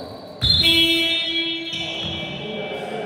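A referee's whistle blows sharply in a large echoing hall.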